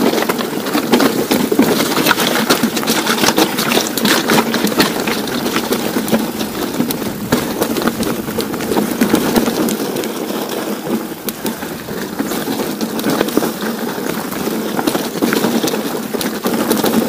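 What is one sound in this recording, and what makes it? Bicycle tyres crunch and rattle over a rough, rocky trail.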